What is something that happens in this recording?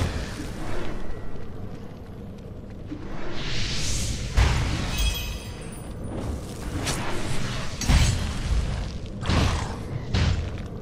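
Spell blasts and weapon impacts thud and crackle in quick bursts.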